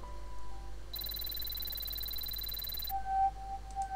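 A game's score counter ticks rapidly as points tally up.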